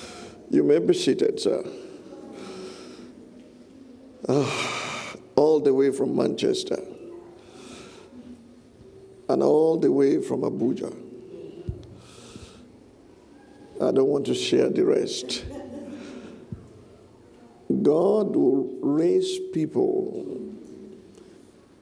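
A man speaks with animation into a microphone, in bursts with pauses, in an echoing hall.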